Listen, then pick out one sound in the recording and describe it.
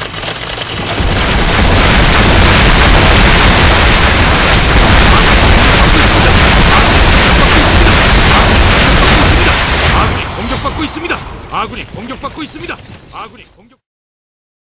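Rockets explode in a long, deep rumbling din.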